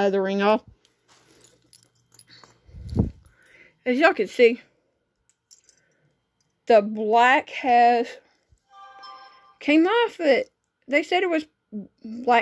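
Metal rings clink softly against each other in a hand.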